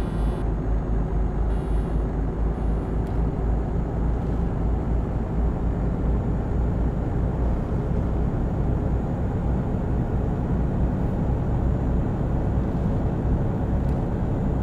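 Tyres roll steadily on smooth road.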